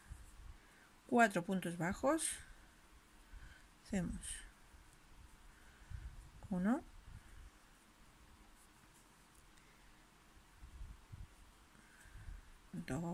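A crochet hook softly rustles and clicks through yarn.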